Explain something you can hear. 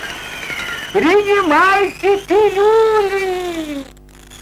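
Men shout out loud in long, drawn-out calls.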